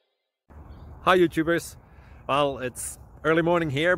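A young man speaks with animation close to the microphone, outdoors.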